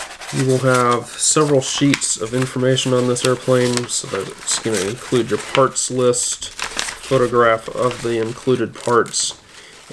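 Paper sheets rustle and flap.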